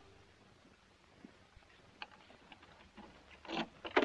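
A door handle rattles.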